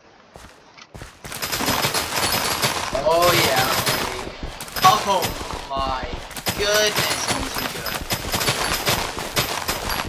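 Crops are cut down rapidly with quick rustling crunches.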